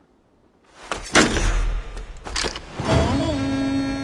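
A carved figure is set down on a table with a knock.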